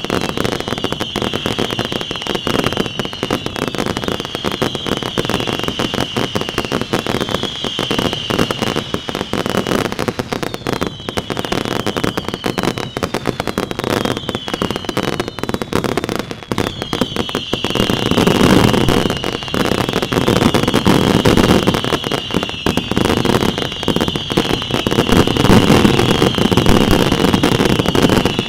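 Fireworks crackle and bang rapidly, close by.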